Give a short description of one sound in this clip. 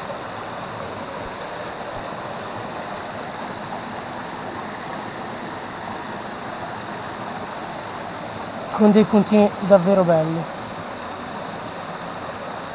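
A hand splashes in shallow water.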